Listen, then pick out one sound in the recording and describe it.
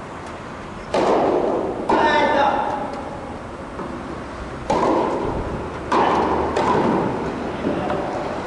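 A tennis ball is struck with a racket, echoing in a large hall.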